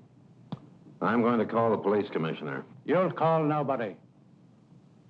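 A man speaks with a loud, steady voice.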